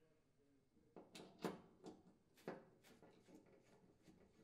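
A screwdriver clicks and scrapes against a metal burner.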